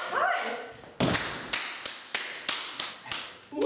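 A woman claps her hands in a slow, steady beat.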